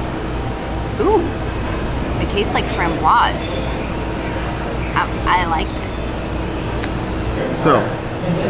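A young woman talks casually, close by.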